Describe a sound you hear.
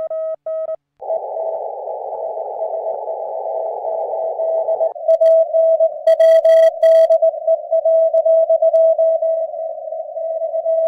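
Radio static hisses steadily with a faint tone underneath.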